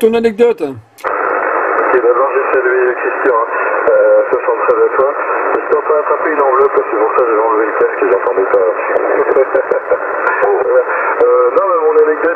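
A voice talks through a radio loudspeaker, thin and crackly.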